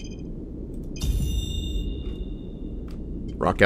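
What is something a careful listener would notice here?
A bright electronic chime rings and fades.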